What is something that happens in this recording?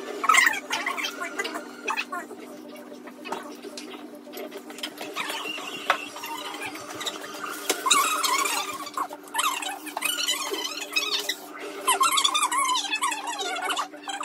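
Young women talk and laugh with animation close by.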